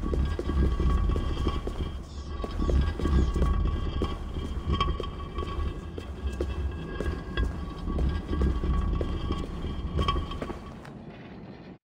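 A heavy wooden crate scrapes and rumbles as it is pushed across a stone floor.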